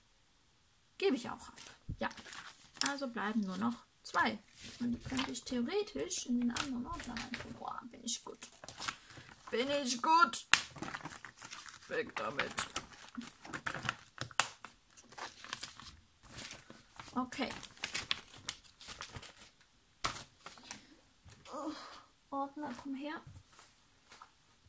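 Plastic sleeves crinkle and rustle as they are handled.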